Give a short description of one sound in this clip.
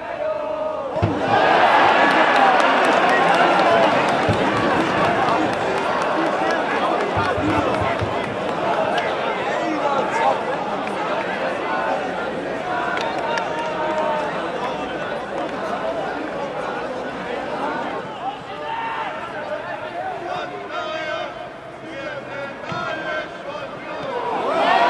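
A crowd cheers loudly outdoors.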